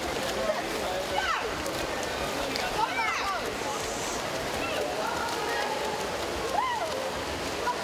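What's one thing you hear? Young women shout and cheer close by.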